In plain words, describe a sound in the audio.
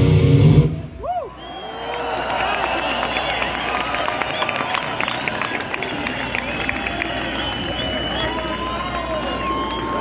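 A large crowd cheers, whistles and shouts.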